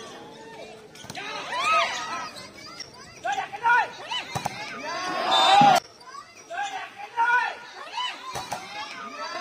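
A volleyball is struck hard with a sharp smack.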